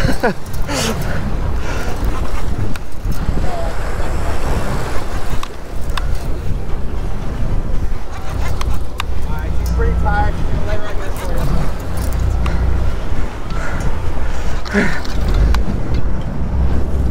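Waves splash and churn against a moving boat.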